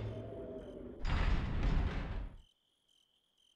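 Heavy wooden doors groan and thud as they are pushed open.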